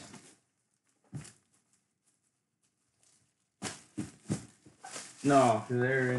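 Plastic wrap crinkles as hands tear it off a box.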